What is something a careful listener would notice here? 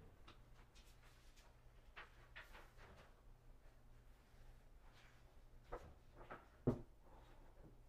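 Objects knock and clatter on a workbench.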